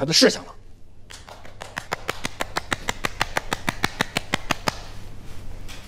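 A woman claps her hands quickly.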